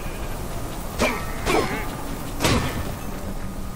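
A sword swishes and strikes in quick blows.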